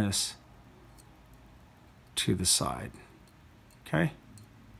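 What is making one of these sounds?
Small metal parts click softly as they are fitted together.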